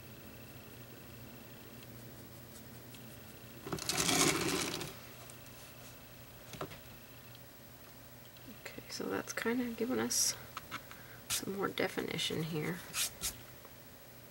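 A brush softly strokes paint onto canvas.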